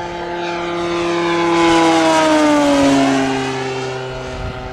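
A propeller plane roars past close by, its pitch dropping as it goes.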